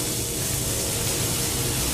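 Electricity crackles and buzzes.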